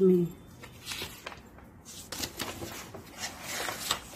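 A book page rustles as it is turned.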